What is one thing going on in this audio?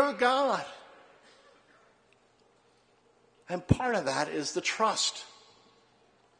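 A middle-aged man speaks with animation into a microphone in a large echoing hall.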